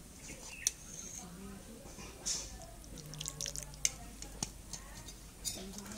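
Thick curry is poured onto a metal plate.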